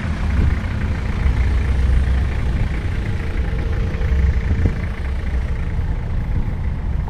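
Wind rumbles across an open space outdoors.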